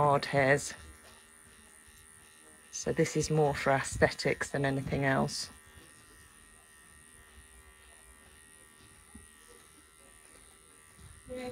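Electric hair clippers hum steadily.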